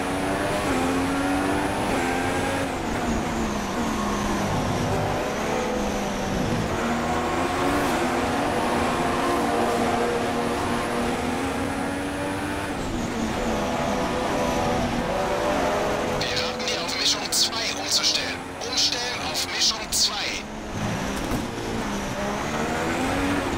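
A Formula One car's engine revs high and shifts gears.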